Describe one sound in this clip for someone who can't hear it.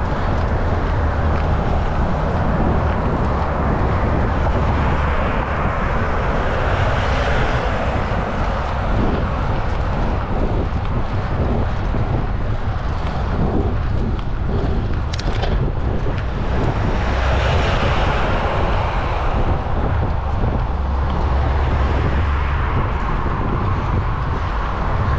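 Wind buffets loudly and steadily outdoors.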